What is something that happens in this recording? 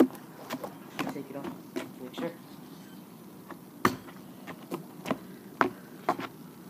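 Sandals slap on hard ground with footsteps close by.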